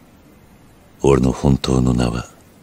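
A man speaks in a low, calm voice, close by.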